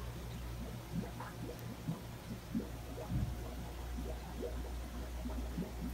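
Air bubbles gurgle softly in water.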